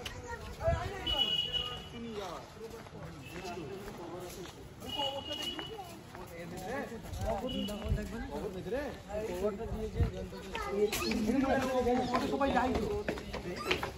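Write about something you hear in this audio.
Young men talk casually nearby outdoors.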